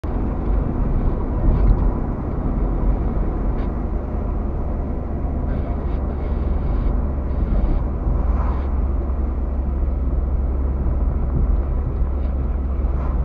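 Tyres roll over the road with a low rumble.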